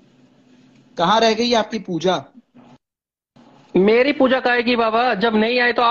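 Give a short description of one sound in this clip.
A man speaks loudly and with animation over an online call.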